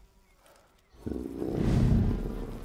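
A large animal growls low and deep.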